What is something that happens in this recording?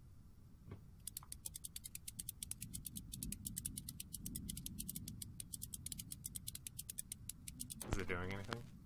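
A gramophone crank clicks rapidly as it is wound.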